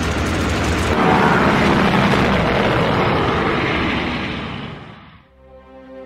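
A propeller plane flies past overhead.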